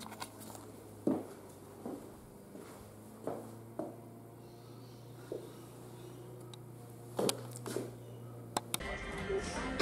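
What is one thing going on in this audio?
Shoes tap on a tile floor.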